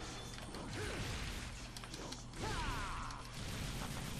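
A sword clashes and slashes in a fight.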